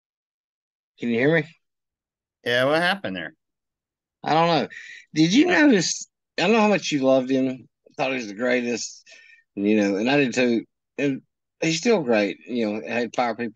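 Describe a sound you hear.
A man talks over an online call.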